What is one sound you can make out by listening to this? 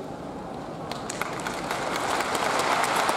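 A crowd claps and cheers, growing louder.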